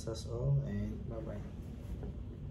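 A young man speaks briefly and calmly, close to the microphone.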